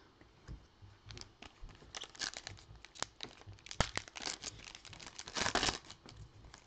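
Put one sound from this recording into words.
A foil wrapper crinkles and rustles as hands tear it open.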